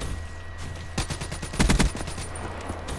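Rapid gunshots fire in a quick burst.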